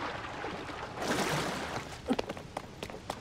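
Water splashes as a swimmer climbs out.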